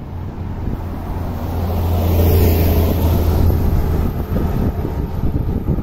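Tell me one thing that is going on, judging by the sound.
A bus drives past on a road nearby.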